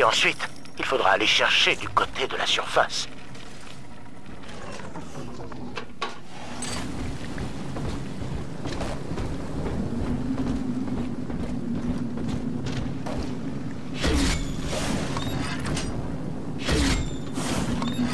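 Flames crackle and roar softly close by.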